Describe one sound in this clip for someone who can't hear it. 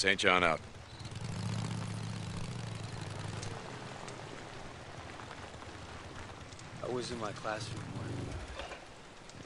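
A motorcycle engine rumbles low as the motorcycle rolls slowly.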